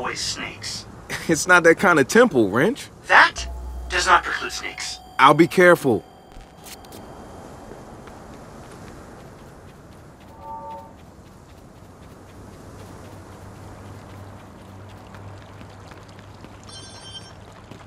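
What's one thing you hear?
Footsteps patter quickly on pavement and grass.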